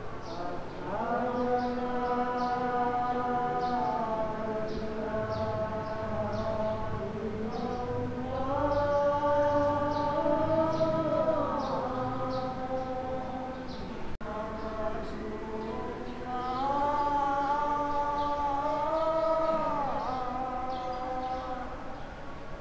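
A group of men chant together in long, drawn-out tones in a large echoing hall.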